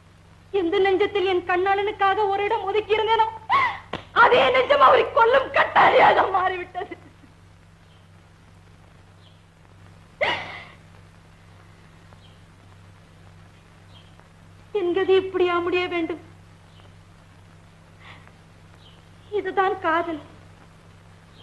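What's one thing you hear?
A woman sings with feeling in long, wavering phrases, with pauses between them.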